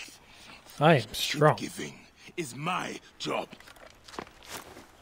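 A man speaks angrily in a gruff voice.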